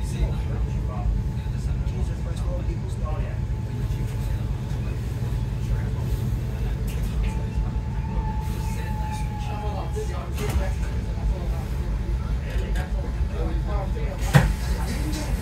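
A train rumbles along with a steady low hum and rattle.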